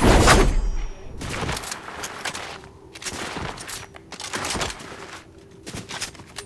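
A shotgun fires in loud, sharp blasts.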